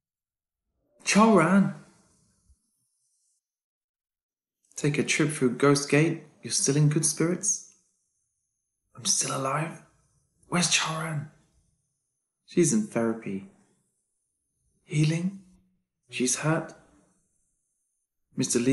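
A young man speaks weakly and slowly, close by.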